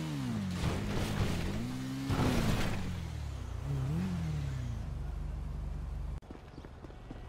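A motorcycle engine revs and whines up and down.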